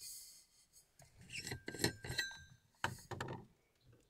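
A thermos lid is unscrewed with a light scraping.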